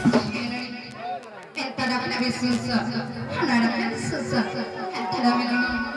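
A large drum is beaten by hand.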